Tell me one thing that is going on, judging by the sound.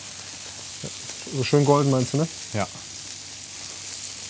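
Meat patties sizzle on a hot grill.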